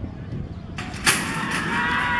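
A starting gate bangs open with a loud metallic clang.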